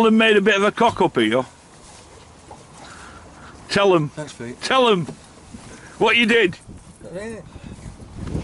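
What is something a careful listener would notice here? An elderly man talks close by.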